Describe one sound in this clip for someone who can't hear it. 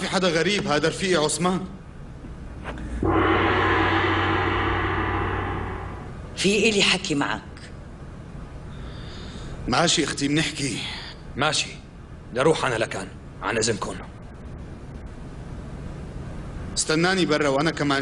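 A man speaks earnestly nearby.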